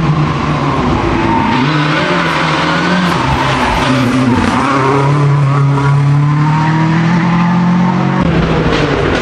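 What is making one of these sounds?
A rally car engine roars loudly, revving and shifting gears as it speeds through a bend.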